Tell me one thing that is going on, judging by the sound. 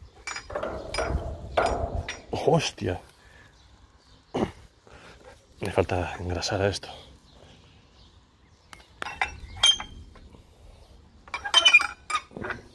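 A rusty metal winch creaks and squeals as it is cranked.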